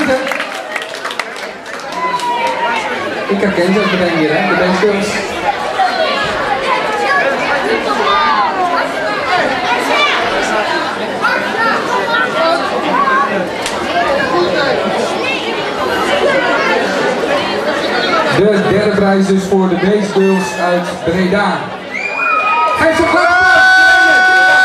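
A man speaks into a microphone over loudspeakers, echoing in a large hall.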